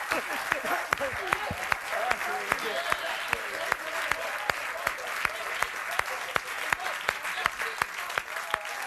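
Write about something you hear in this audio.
A band plays a lively song.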